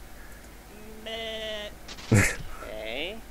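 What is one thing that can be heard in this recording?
A man's voice makes a comical, wavering animal noise.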